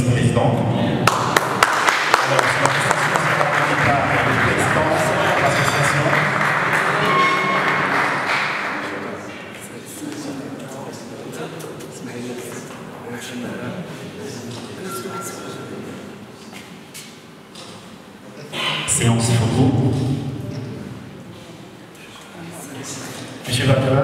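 Men chat and laugh nearby.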